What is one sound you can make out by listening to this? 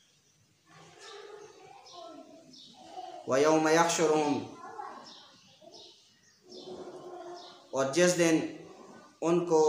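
A man recites in a chanting voice, close to a clip-on microphone.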